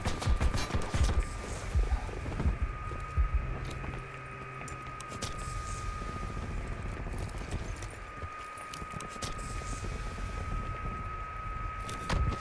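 A medical kit clicks and hisses as it is used.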